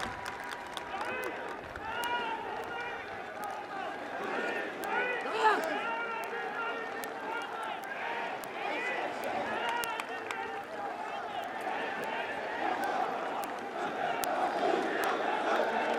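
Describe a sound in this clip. An elderly man speaks slowly and formally through a loudspeaker, echoing across an open space.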